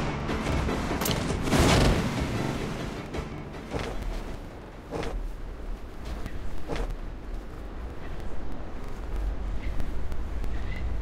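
Wind rushes steadily past a parachute in flight.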